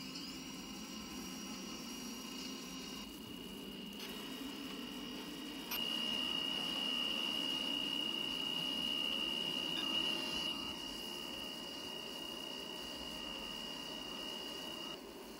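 A train's electric motor whines at a steady high pitch, growing louder partway through.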